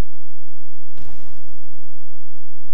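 A game creature strikes with a heavy whooshing impact.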